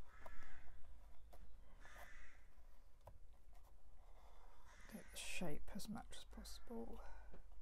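A brush taps and dabs paint onto a canvas.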